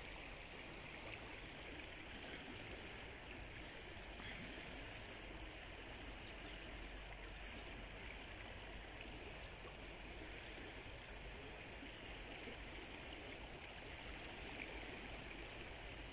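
A river rushes and flows steadily outdoors.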